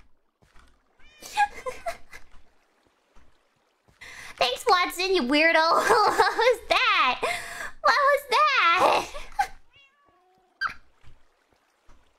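A young woman talks with animation in a high, playful voice, close to a microphone.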